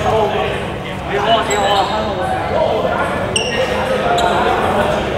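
A crowd of young men talk and call out in a large echoing hall.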